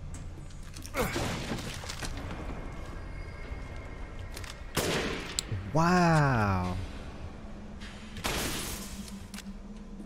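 A gun fires loud shots in an echoing corridor.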